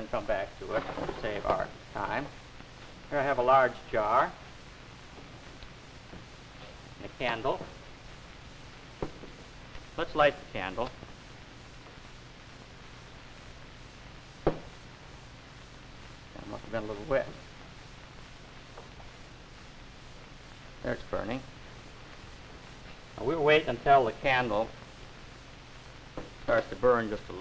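A man talks calmly in short phrases, heard through an old, hissy recording.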